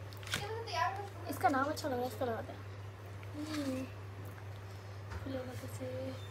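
A plastic packet crinkles in a young woman's hands.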